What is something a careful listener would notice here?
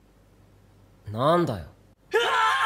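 A young man exclaims in surprise.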